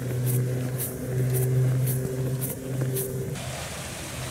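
An excavator engine rumbles steadily nearby.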